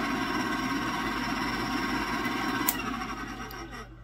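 A stand mixer motor whirs steadily, then stops.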